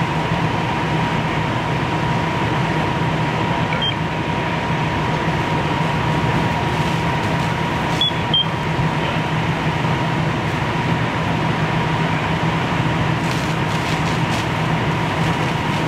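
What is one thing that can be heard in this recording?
Water sprays from fire hoses with a steady hiss.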